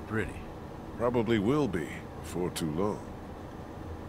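A man speaks calmly and hesitantly.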